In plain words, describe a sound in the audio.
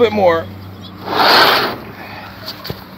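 A wooden barn door scrapes as it slides open.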